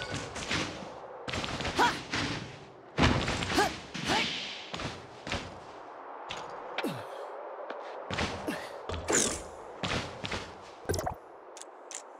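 Footsteps patter quickly on grass and wooden planks.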